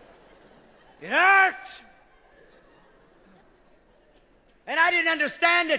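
A man shouts loudly into a microphone in a large hall.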